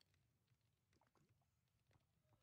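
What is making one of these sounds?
A computer mouse clicks softly.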